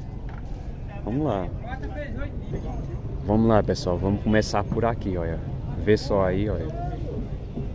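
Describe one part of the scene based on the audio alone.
Cattle low nearby.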